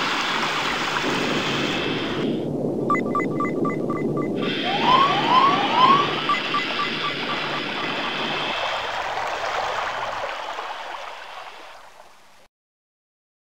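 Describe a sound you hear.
Water rushes and gurgles as tanks fill.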